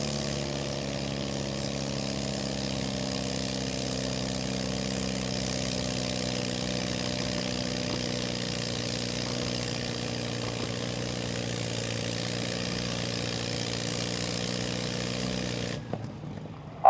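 A tractor engine roars steadily under heavy load.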